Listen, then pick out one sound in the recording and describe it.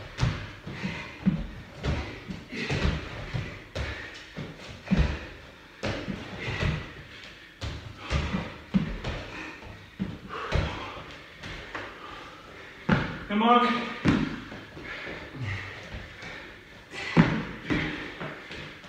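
Feet thump and land on a padded floor in quick bursts.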